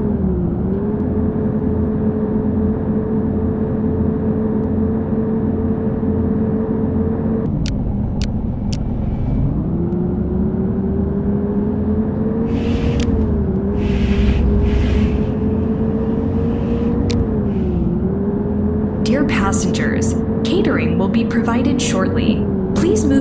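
A bus engine hums steadily, its pitch rising and dipping with the speed.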